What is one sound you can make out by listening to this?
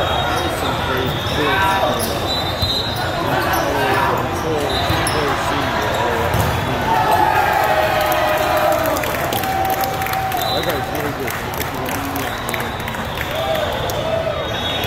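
Many voices of young players and onlookers chatter and call out in a large echoing hall.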